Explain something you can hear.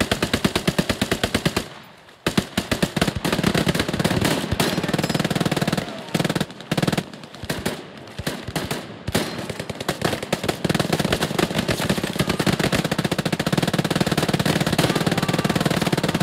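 Rapid gunfire rattles nearby in long bursts.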